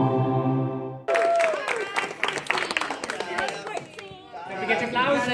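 A small group claps and applauds.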